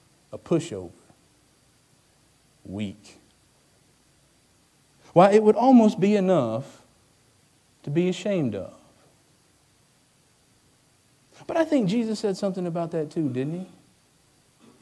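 A man speaks calmly into a microphone in phrases with pauses.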